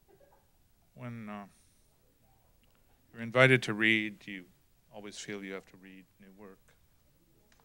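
A middle-aged man speaks calmly into a microphone, with pauses.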